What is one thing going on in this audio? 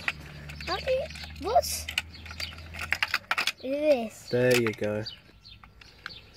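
Plastic toy launchers click as they are loaded.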